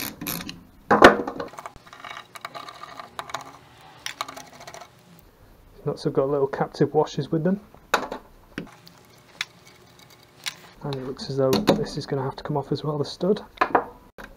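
Metal parts clink and knock together.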